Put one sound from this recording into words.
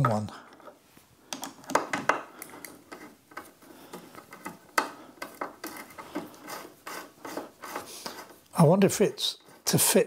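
A screwdriver turns a screw into plastic with small clicks and creaks.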